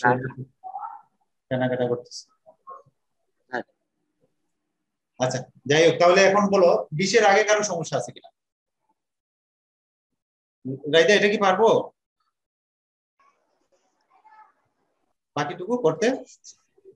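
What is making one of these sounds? A man speaks calmly into a close microphone, explaining in short bursts.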